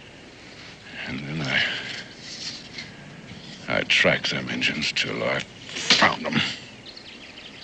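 An older man answers in a low, rough voice nearby.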